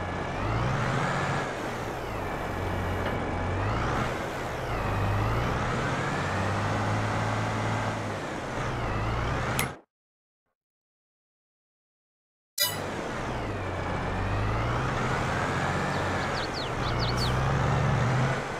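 A tractor engine rumbles steadily, rising and falling in pitch.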